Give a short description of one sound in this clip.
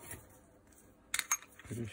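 A metal pick scrapes against a drill chuck.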